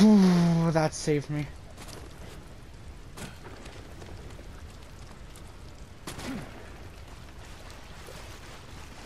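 Hands and feet scrape and thud on rock during a climb.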